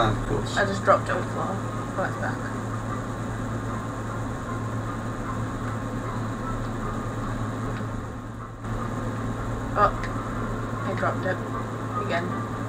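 Two young men talk and react excitedly, close to a microphone.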